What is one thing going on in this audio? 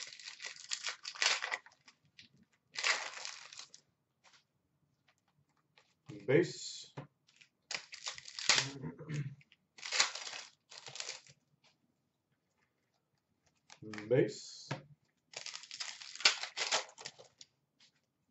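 Foil card wrappers crinkle and rustle as hands tear them open.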